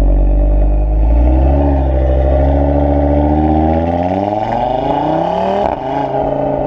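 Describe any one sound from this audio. An Audi RS3's turbocharged five-cylinder engine revs up as the car pulls away and accelerates.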